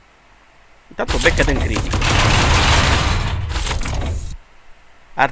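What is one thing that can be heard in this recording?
Heavy gunfire hammers.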